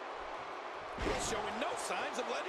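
A body slams onto a mat with a heavy thud.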